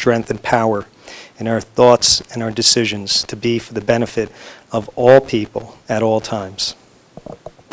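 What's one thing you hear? A man speaks slowly and solemnly into a microphone.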